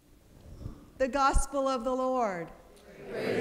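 A woman sings a short chanted line into a microphone in a large echoing hall.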